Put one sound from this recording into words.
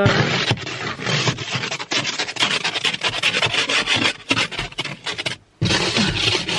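An ice scraper scrapes frost off a car window.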